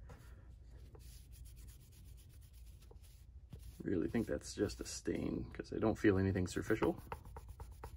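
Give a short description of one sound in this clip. A paper towel rubs and crinkles against a plastic casing.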